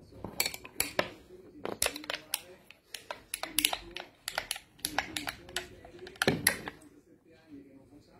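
A spoon clinks against a glass while stirring.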